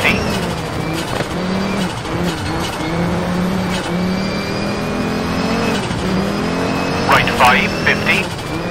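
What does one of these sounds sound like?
Tyres crunch and skid on snowy gravel.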